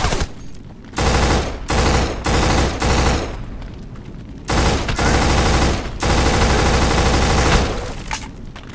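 An assault rifle fires in rapid bursts, loud and close.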